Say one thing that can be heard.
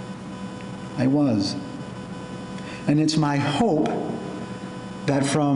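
A middle-aged man speaks calmly into a microphone, in a room with some echo.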